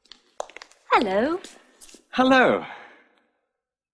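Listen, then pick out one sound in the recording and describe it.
A young woman speaks clearly and close by.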